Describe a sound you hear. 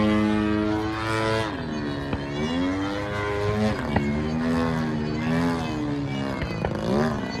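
A small propeller plane's engine drones overhead, its pitch rising and falling as it manoeuvres.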